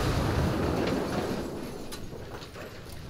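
An explosion booms and rumbles in a video game.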